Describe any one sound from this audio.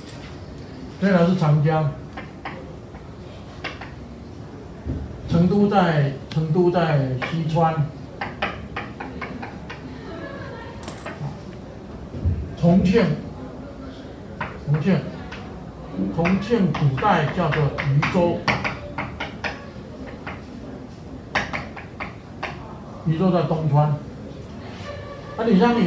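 An elderly man lectures in bursts with pauses, close by.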